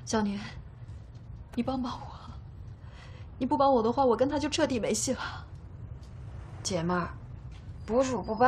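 A young woman speaks tearfully and pleadingly, close by.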